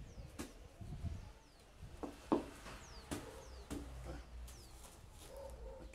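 Small objects knock lightly on a wooden surface.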